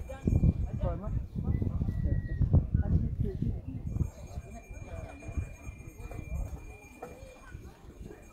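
A crowd of people talk outdoors at a distance.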